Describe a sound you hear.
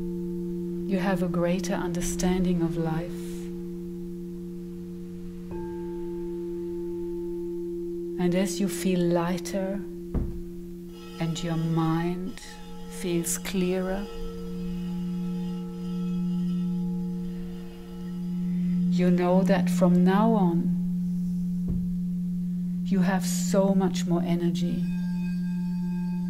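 A woman sings softly into a microphone in short phrases.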